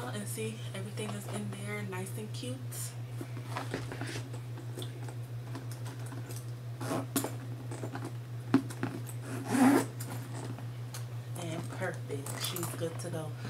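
Handbag buckles and clasps clink as a woman handles a bag.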